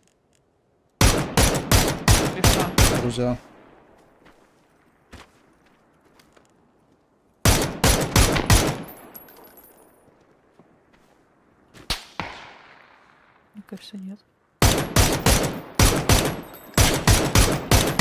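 Rifle shots ring out in rapid bursts, with echoes trailing off.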